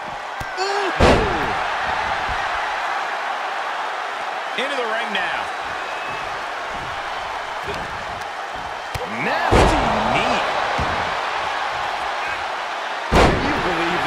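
A body slams onto a wrestling ring mat.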